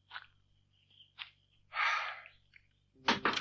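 A man and a woman breathe hard and sharply.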